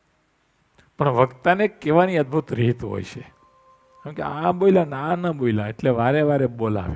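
An elderly man speaks calmly into a headset microphone.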